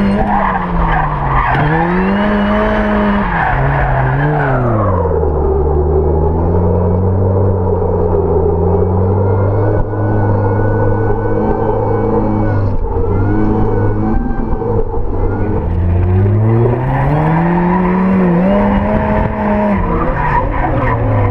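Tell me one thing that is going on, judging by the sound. A car engine revs up and down loudly from inside the cabin.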